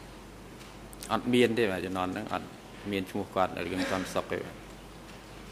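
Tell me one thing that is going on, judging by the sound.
A man speaks briefly and calmly into a microphone.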